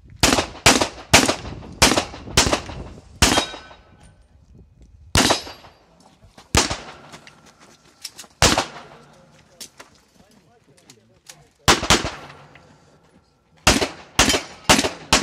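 Pistol shots crack outdoors in quick bursts.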